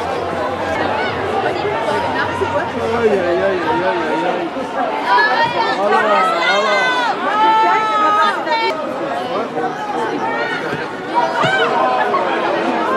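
Women footballers shout and call out to each other across an open outdoor pitch.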